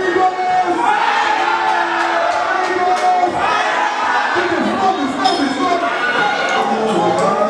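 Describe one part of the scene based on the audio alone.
A crowd cheers and shouts with excitement.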